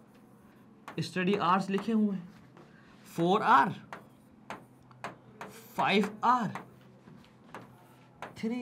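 A marker taps and squeaks on a board.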